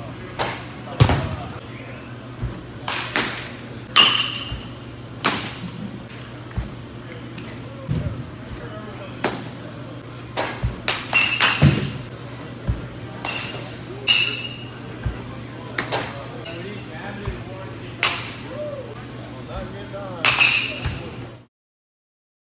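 Baseballs smack into a net with sharp pops.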